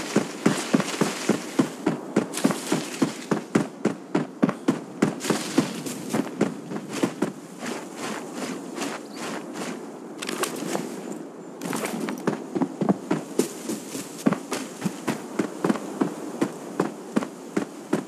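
Footsteps crunch quickly through grass and dirt.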